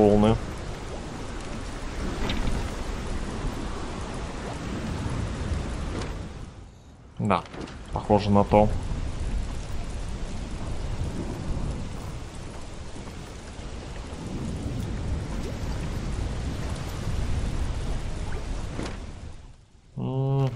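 Stormy ocean waves roar and crash steadily.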